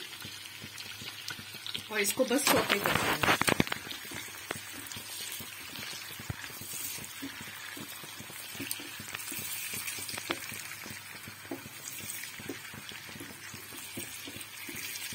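Onions sizzle steadily in hot oil.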